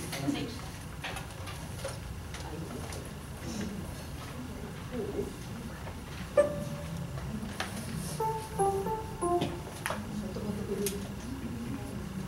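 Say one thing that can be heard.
An electric keyboard plays.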